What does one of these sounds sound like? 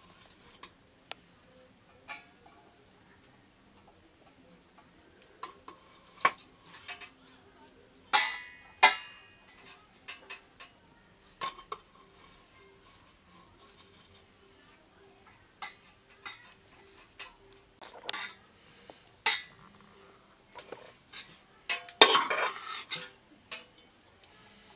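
A metal spoon scrapes and clinks against metal pots and plates.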